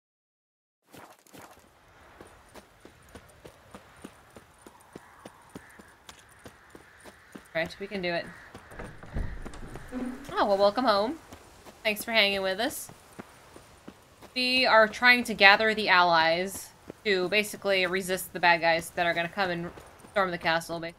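Footsteps tread on stone at a steady pace.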